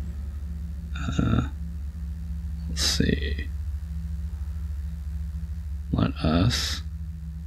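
A soft chime sounds as a menu option is picked.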